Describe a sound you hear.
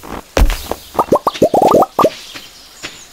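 Small items pop up one after another with quick rising blips.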